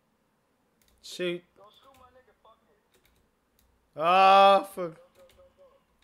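A young man shouts out loudly.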